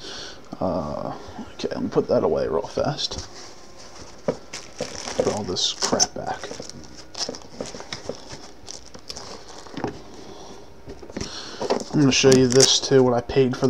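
Plastic wrapping crinkles and rustles in a hand.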